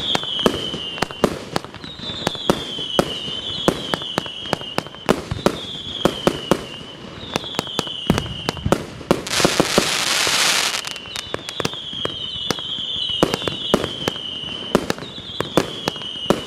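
Fireworks bang and pop in rapid bursts.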